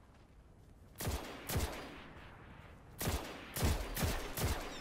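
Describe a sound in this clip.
A rifle fires single loud shots that boom and echo.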